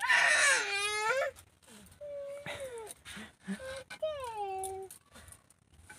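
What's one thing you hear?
A small child squeals and babbles in a high voice.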